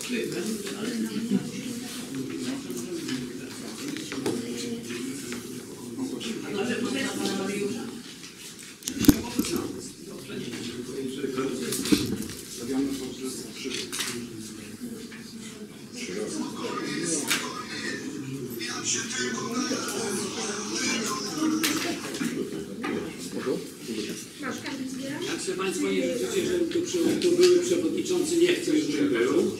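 Several men and women talk at once.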